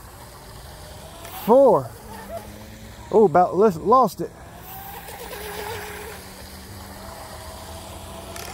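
A fountain splashes steadily.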